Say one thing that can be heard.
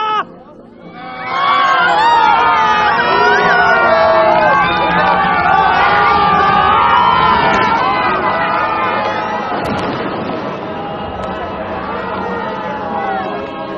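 A large crowd cries out and wails together.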